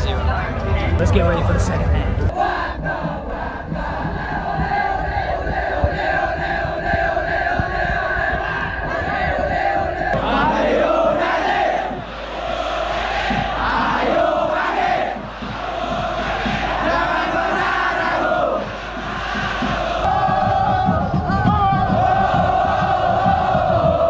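A large crowd of fans chants and sings loudly in unison, outdoors.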